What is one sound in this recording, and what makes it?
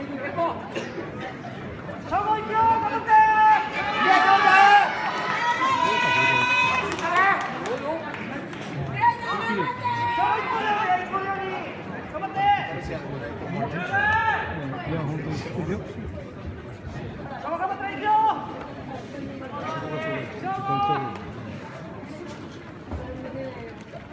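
Men in a crowd shout loudly in an echoing hall.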